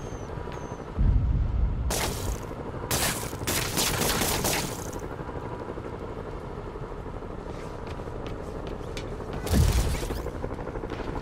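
Punches and heavy blows land with loud thuds and whooshes.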